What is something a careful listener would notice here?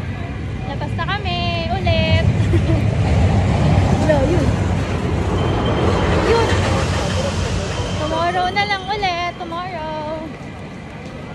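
A young woman talks animatedly close to the microphone.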